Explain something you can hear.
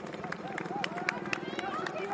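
A crowd cheers and claps along the roadside.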